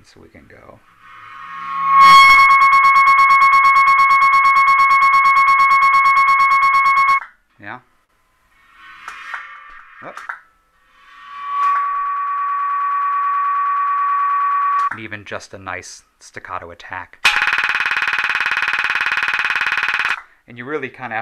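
A bow drawn across a cymbal makes a long, shrill ringing tone that stops abruptly.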